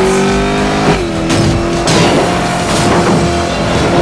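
Tyres skid and crunch over loose gravel.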